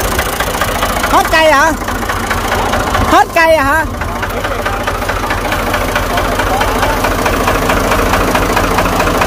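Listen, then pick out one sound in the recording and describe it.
A tractor engine idles with a steady, rattling rumble.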